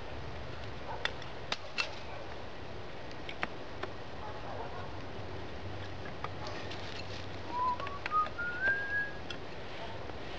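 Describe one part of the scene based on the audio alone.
Wooden sticks clack and knock together.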